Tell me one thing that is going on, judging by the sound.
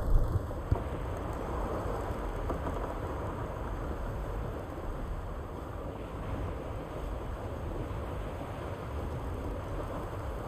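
Water splashes and rushes steadily past a raft sailing over the sea.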